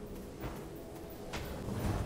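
A swirling sandstorm roars.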